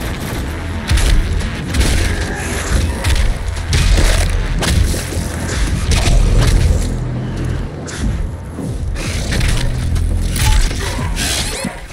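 Monsters growl and roar.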